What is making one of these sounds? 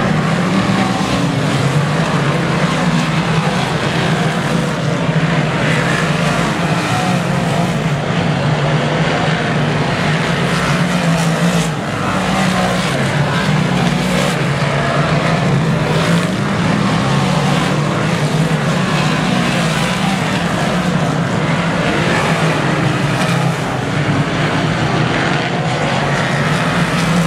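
Race car engines roar loudly as cars speed around a dirt track.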